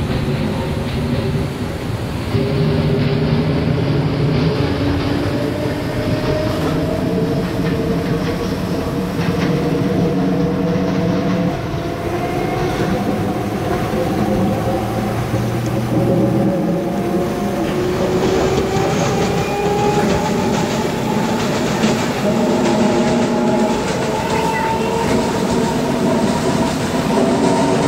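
An electric commuter train's motors whine and rise in pitch as the train speeds up.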